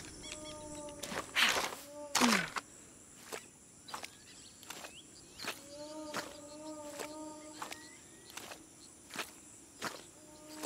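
Footsteps crunch on leaf-strewn dirt.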